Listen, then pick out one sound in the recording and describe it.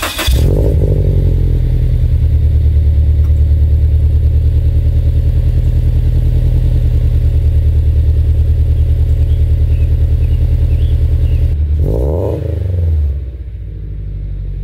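A car engine idles with a loud, deep, steady rumble from the exhaust.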